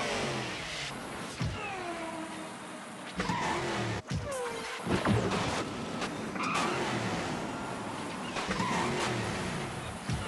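Tyres skid and drift on sand.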